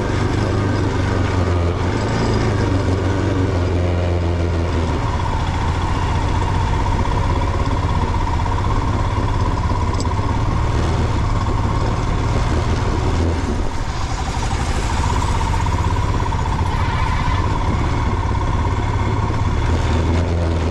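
Tyres crunch over a rough gravel road.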